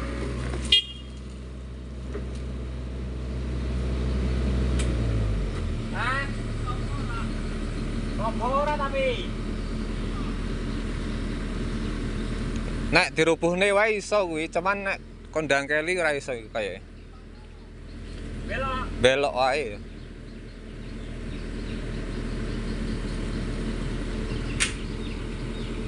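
A diesel excavator engine runs with a low hum.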